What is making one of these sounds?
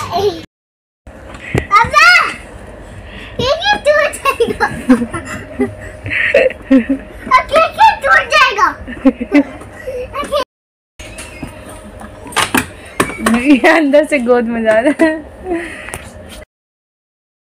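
A young child babbles excitedly close by.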